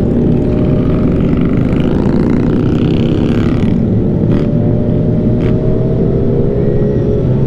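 Other motorcycles rev nearby on the road.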